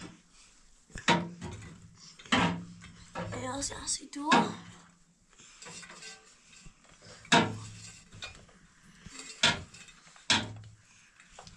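Metal pots and tongs clink and knock sharply.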